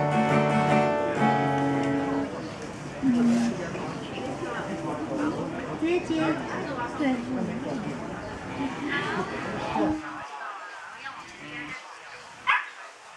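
An acoustic guitar is strummed through a small amplifier.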